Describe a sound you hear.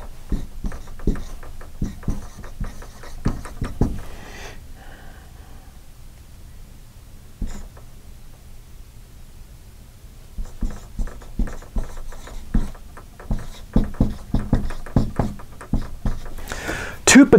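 A marker squeaks and taps against a whiteboard.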